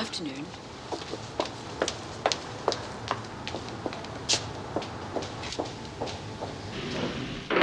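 Footsteps click on a hard floor as a woman walks away.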